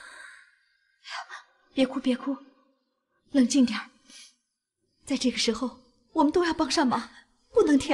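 A middle-aged woman speaks calmly and soothingly, close by.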